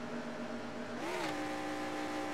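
A racing car engine shifts gear with a brief rise and drop in pitch.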